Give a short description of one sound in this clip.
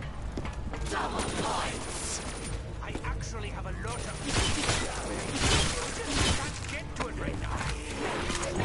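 Gunfire from a video game rifle bursts in quick rapid shots.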